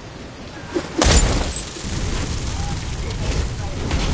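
A loud explosion bursts with a deep boom and crackles.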